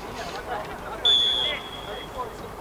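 A referee's whistle blows a short blast.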